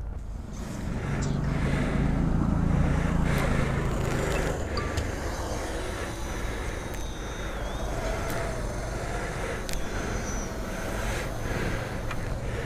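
A small drone's propellers whir and buzz as it takes off.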